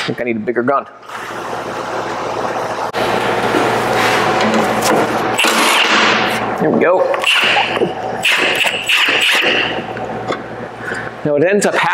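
An impact wrench whirs and hammers in bursts.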